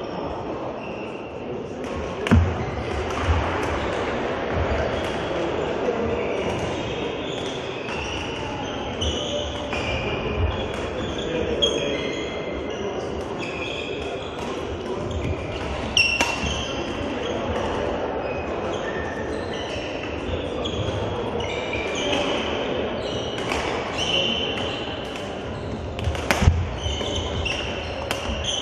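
Sports shoes squeak on a hard court floor.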